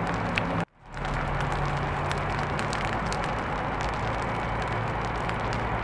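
Dry grass crackles as it burns.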